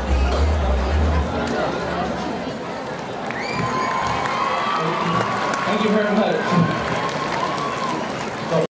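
A large outdoor crowd chatters and cheers in a steady murmur.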